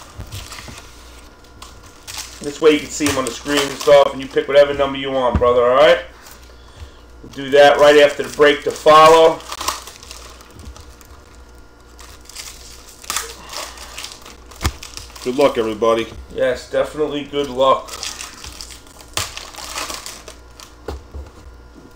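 Plastic wrappers crinkle and rustle as hands handle them.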